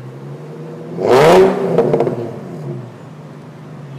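A sports car engine revs sharply and pops from the exhaust, then settles.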